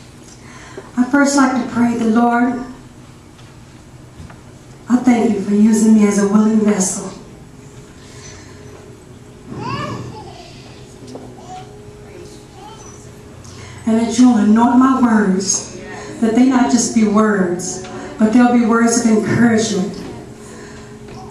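A woman sings into a microphone in short phrases, heard through loudspeakers in an echoing room.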